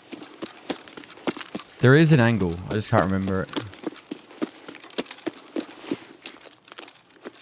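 Footsteps crunch steadily over grass and stones.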